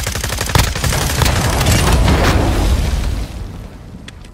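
Rapid gunfire rattles loudly, then stops.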